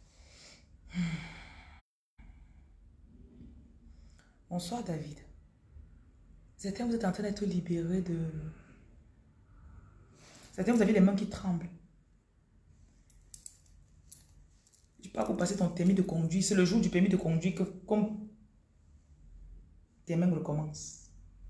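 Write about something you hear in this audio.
A woman speaks close to the microphone, calmly and with pauses.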